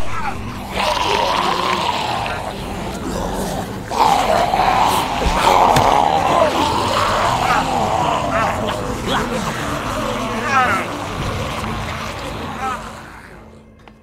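A man speaks in a tense, frightened voice.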